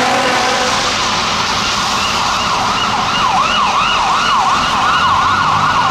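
A siren wails nearby, rising and falling quickly.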